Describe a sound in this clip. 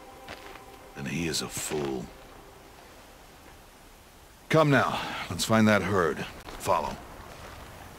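A man speaks in a deep, calm voice, close by.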